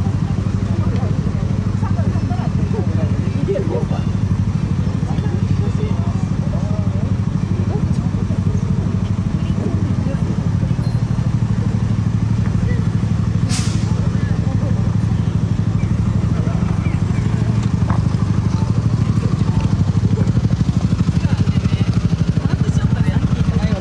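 A crowd of people murmurs nearby on a busy street.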